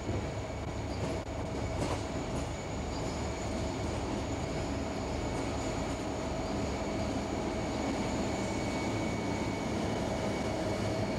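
Freight cars clatter and squeal over rail joints.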